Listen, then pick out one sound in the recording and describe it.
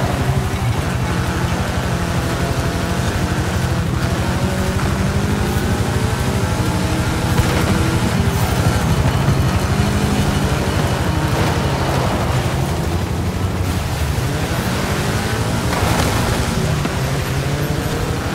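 Tyres skid and scrabble over loose dirt.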